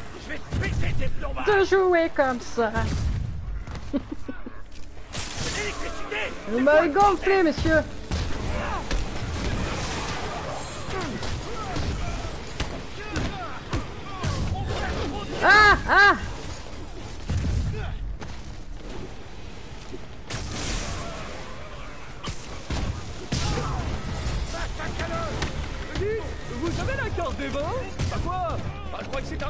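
Punches and blows thud in a game fight.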